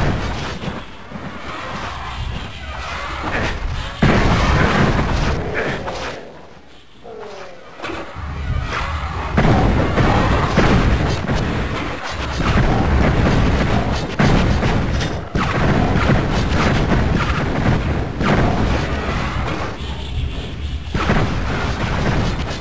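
Magic bolts fire in quick bursts.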